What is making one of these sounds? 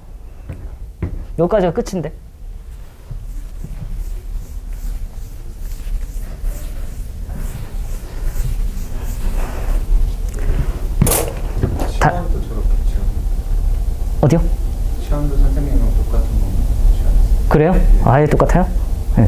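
A young man lectures calmly through a microphone.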